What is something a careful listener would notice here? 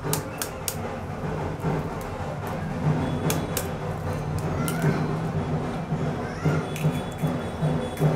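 A knife cuts through a boiled egg.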